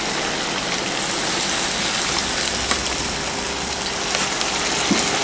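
Water pours from a plastic bottle into a cast-iron cauldron of vegetables.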